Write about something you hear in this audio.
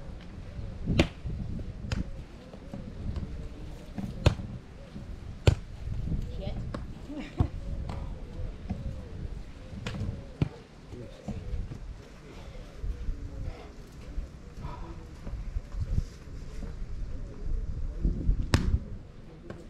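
A volleyball thumps as players strike it with their hands and forearms.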